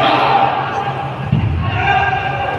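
A kick thuds against a padded body protector.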